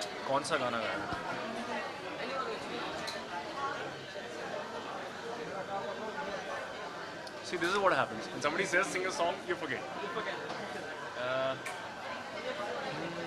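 A young man speaks close into microphones in a lively, cheerful way.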